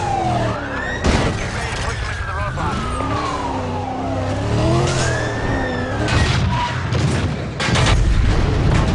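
Cars crash together with heavy metallic thuds.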